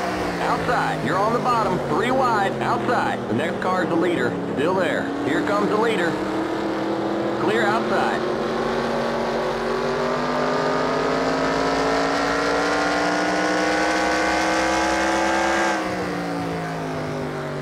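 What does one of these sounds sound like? A race car engine roars at high revs, climbing steadily in pitch and then dropping suddenly.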